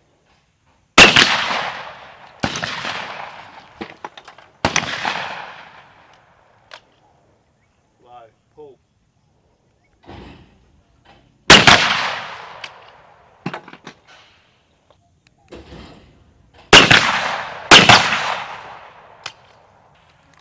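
Shotgun blasts boom loudly outdoors, echoing across open ground.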